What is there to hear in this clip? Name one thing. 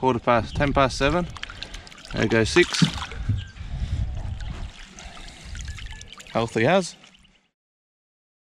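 A fish splashes and thrashes in shallow water.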